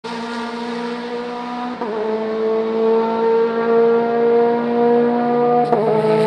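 A racing car engine roars loudly at high revs as the car approaches and passes close by.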